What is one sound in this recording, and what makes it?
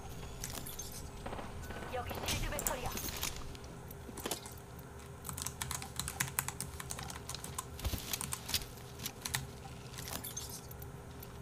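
Short clicks sound as menu items are picked.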